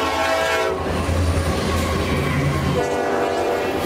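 A locomotive engine roars as it passes.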